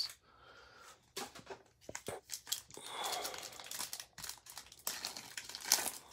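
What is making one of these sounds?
A plastic wrapper crinkles and tears as it is pulled open.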